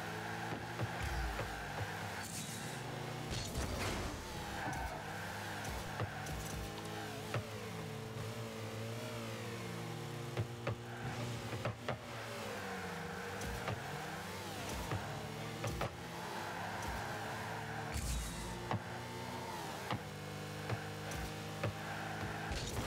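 A ball thuds against cars.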